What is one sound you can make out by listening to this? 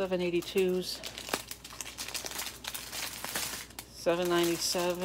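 Plastic bags of small beads crinkle and rustle as hands handle them.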